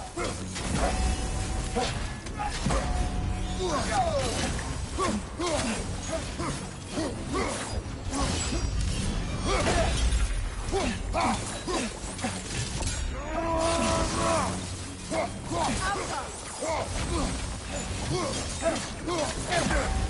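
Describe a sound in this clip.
Flames roar and crackle in bursts.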